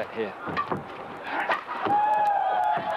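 A racket strikes a shuttlecock with sharp smacks.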